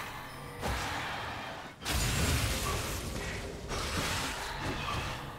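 Game combat effects crackle and thud in a busy fight.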